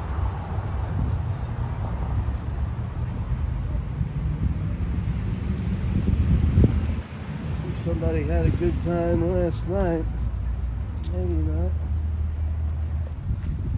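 Traffic rumbles along a nearby road outdoors.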